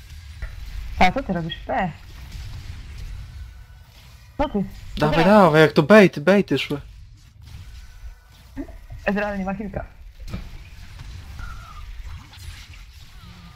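Spell effects whoosh and crackle during a fight in a video game.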